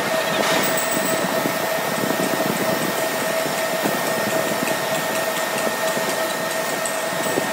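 A roll forming machine runs with a steady whine and rattle.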